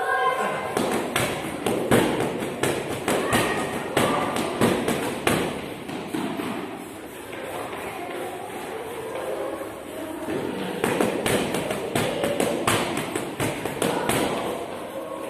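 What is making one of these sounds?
Gloved punches thud rapidly against a heavy punching bag.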